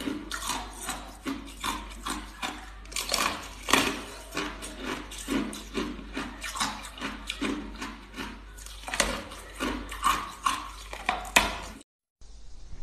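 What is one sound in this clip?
A young woman bites and crunches hard ice close to a microphone.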